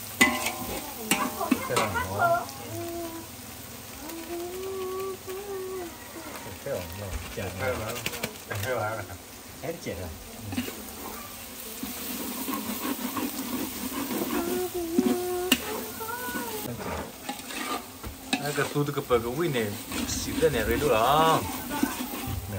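Food sizzles and bubbles in hot oil.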